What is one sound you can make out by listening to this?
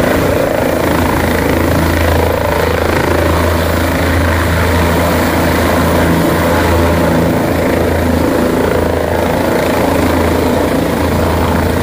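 A helicopter's rotor and engine roar loudly and steadily nearby.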